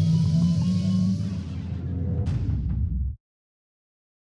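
A magic explosion booms and rumbles.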